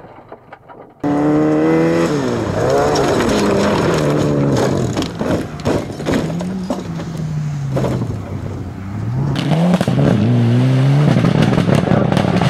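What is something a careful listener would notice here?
A rally car engine revs loudly and roars.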